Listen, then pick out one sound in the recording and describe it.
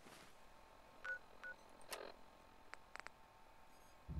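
Short electronic beeps and clicks sound from a handheld device.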